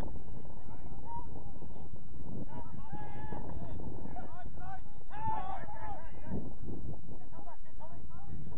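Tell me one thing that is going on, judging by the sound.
Young men shout to each other in the distance.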